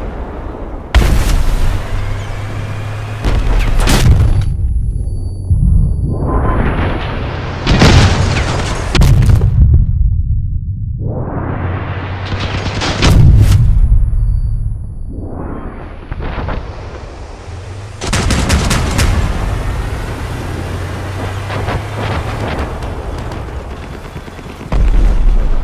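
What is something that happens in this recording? Heavy guns fire in loud booming blasts.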